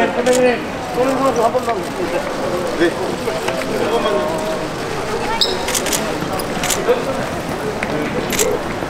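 A crowd of men and women chatter and call out in a large echoing hall.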